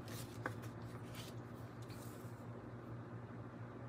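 A card is set down on a table with a soft tap.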